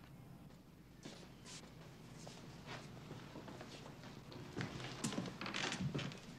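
Footsteps sound on a hard floor indoors.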